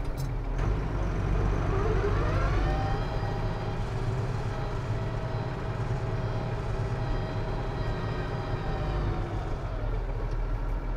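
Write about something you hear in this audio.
A hydraulic pump whines, rising in pitch and then holding steady as a plough lifts.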